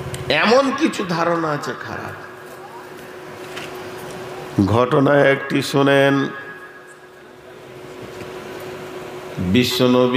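An elderly man speaks with animation through a microphone and loudspeakers, in long pauses between phrases.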